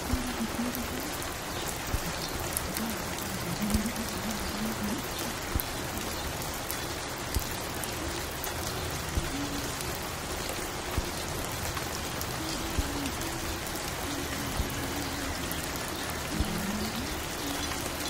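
Soft, mellow music plays from a record.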